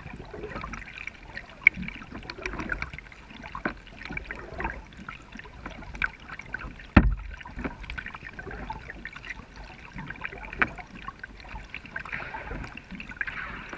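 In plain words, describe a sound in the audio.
A kayak paddle dips and splashes in calm water.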